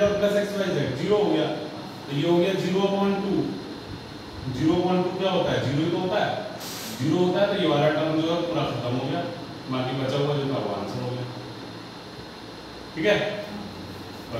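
A man explains calmly and clearly, close by.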